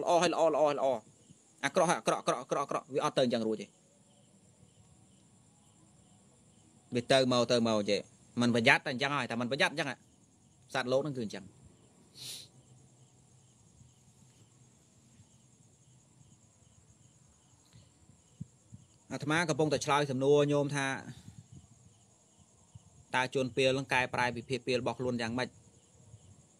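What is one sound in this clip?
A young man speaks calmly and close to a microphone, in bursts with pauses.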